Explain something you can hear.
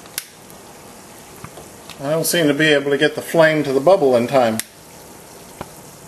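Water bubbles and boils steadily in a pot.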